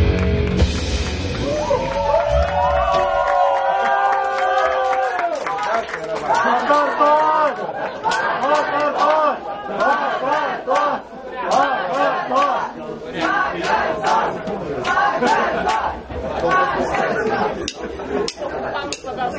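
A rock band plays loudly on electric guitars and drums.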